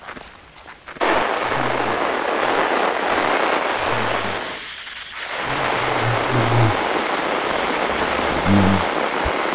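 Loud static hisses and crackles.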